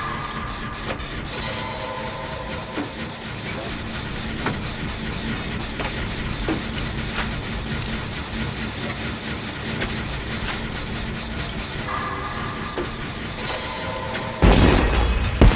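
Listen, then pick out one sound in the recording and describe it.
A generator clanks and rattles as it is repaired.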